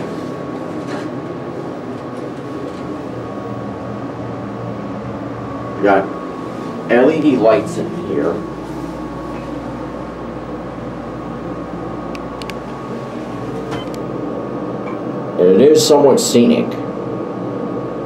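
An elevator hums steadily as it travels.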